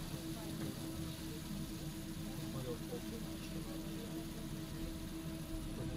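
A fidget spinner whirs softly.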